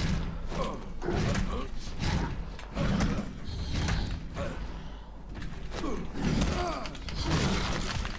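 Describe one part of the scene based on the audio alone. Fists strike a fleshy creature with heavy wet thuds.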